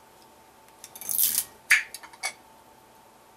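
A bottle cap twists off with a short fizzing hiss.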